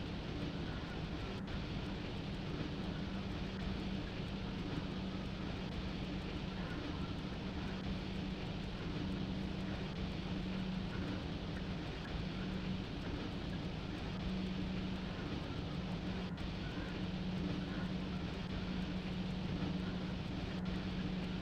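Train wheels rumble and clatter on the rails.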